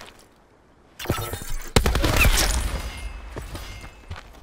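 A gun fires a rapid burst of loud shots.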